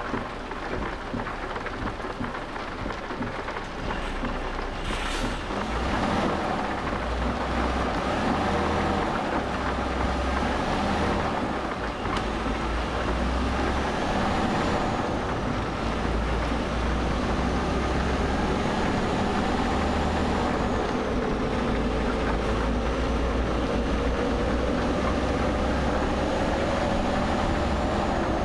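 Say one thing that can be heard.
A truck engine drones steadily and grows louder as it speeds up.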